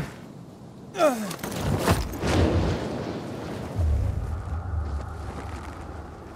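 Wind rushes loudly past a glider in flight.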